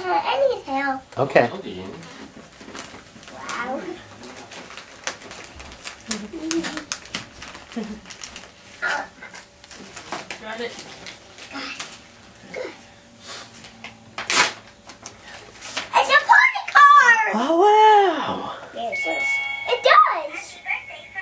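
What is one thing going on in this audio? A young girl squeals and talks excitedly close by.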